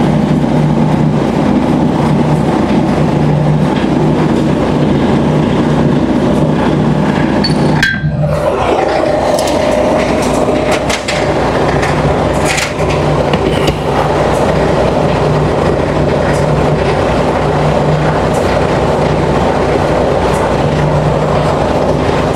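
A large truck engine idles with a steady low rumble in an echoing hall.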